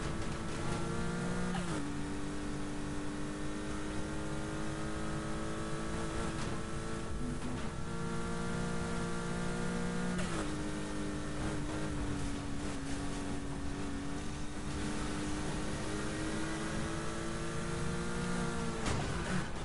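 A car engine roars at high revs, dropping in pitch briefly with each gear change.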